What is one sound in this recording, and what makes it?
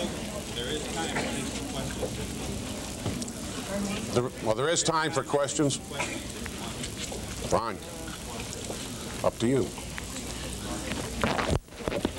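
A crowd murmurs and chatters throughout.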